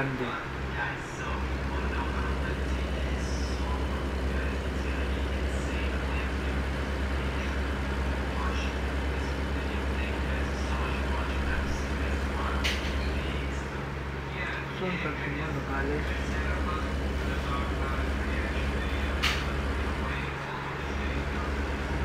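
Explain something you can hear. A truck's diesel engine drones steadily, with short dips.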